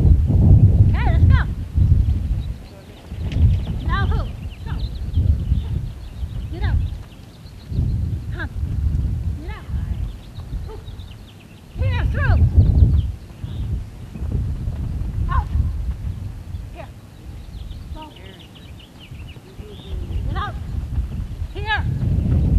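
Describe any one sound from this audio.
A woman calls out commands to a dog across open ground.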